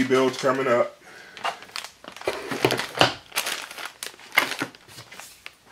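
Plastic bags crinkle as they are set down.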